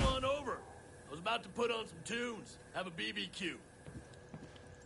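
A man calls out nearby in a friendly, relaxed voice.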